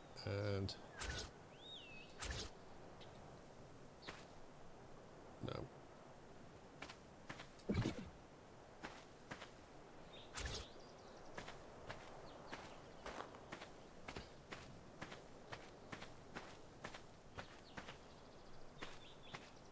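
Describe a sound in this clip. Stone blocks knock and thud as they are set down.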